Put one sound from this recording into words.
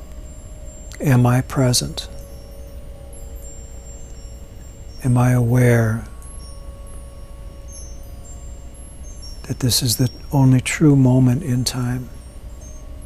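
A middle-aged man speaks slowly and calmly, close to a microphone, with long pauses.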